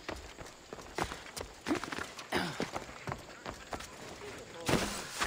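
Someone climbs and lands on a tiled roof with heavy thuds.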